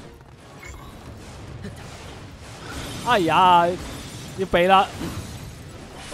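Icy magic blasts crackle and shatter.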